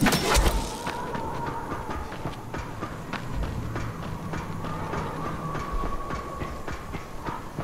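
Footsteps clang quickly on metal stairs.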